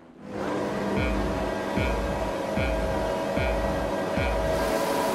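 Short electronic beeps sound one after another at an even pace.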